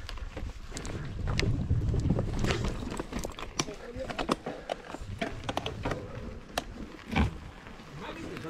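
A bicycle rattles and clatters over bumps and roots.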